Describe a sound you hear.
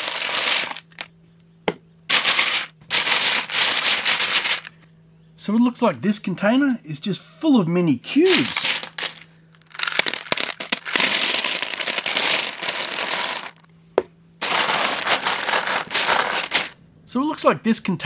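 Small plastic pieces rattle as a hand stirs through them.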